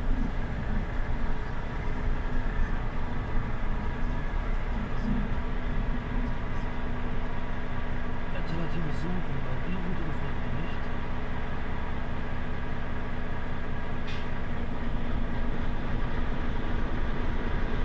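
A bus engine rumbles steadily close by.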